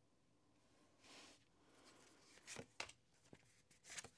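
Cards slide and tap softly on a table.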